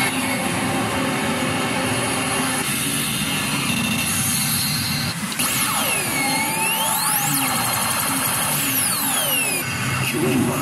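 A gaming machine plays loud electronic music.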